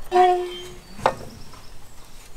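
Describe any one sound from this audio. A brick knocks down onto stone.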